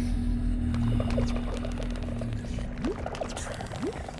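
A gas pod bursts underwater with a soft pop and hiss.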